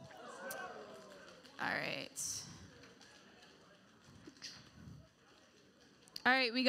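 A young woman speaks calmly into a microphone in a large echoing room.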